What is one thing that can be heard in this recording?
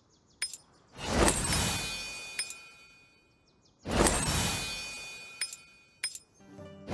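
A bright shimmering chime rings out twice, then fades.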